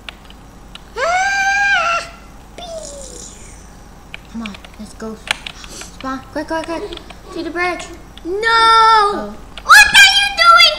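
A second young boy shouts loudly close to a microphone.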